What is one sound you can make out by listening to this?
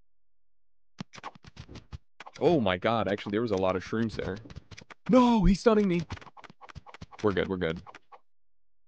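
Short thuds and hits sound as small game creatures clash in battle.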